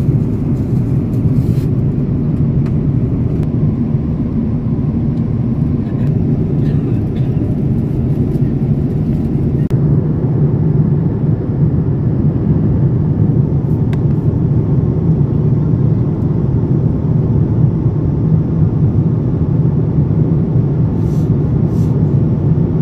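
A jet engine roars steadily and low throughout, heard from inside an aircraft cabin.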